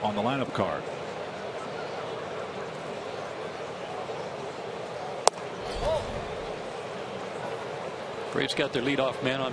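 A large stadium crowd murmurs steadily in the open air.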